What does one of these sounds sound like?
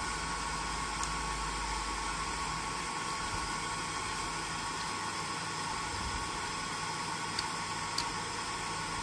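A thin wooden stick taps lightly on metal.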